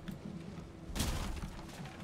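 An axe thuds into wood.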